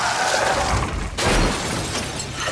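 A car crashes with a loud metallic crunch.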